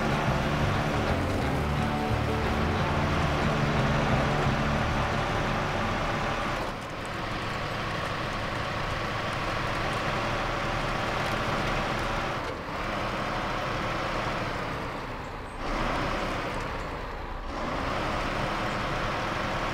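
A heavy truck engine rumbles and labours steadily.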